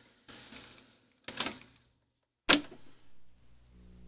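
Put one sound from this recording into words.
A button on a tape machine clicks.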